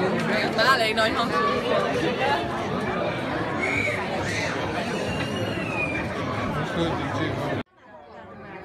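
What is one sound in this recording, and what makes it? A dense crowd chatters loudly outdoors.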